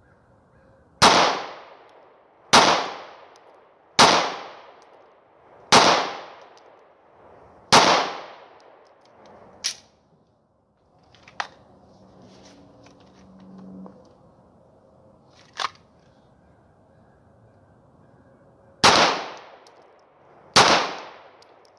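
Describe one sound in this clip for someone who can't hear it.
A handgun fires loud shots outdoors, each echoing away.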